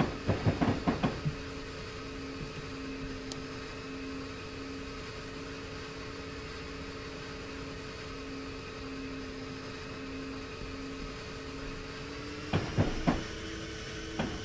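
Train wheels rumble over rails.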